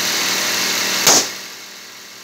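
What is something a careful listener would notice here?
A balloon bursts with a loud pop.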